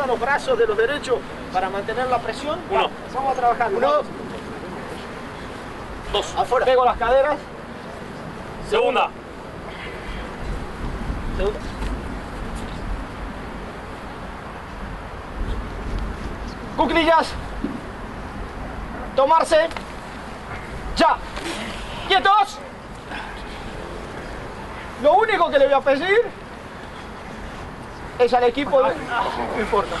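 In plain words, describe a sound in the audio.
A man calls out loud instructions outdoors.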